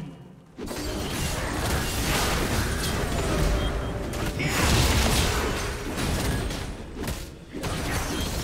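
Game spell effects crash and whoosh during a fight.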